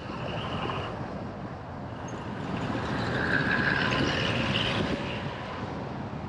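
A van passes close by.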